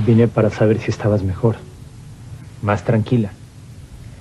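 A man speaks softly and closely.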